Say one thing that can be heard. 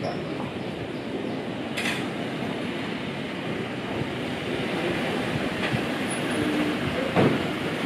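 A car engine hums as a car pulls up slowly close by.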